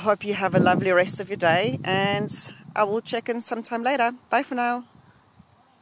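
A middle-aged woman speaks with animation close to a microphone.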